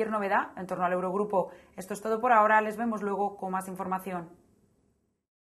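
A young woman reads out calmly and clearly through a microphone.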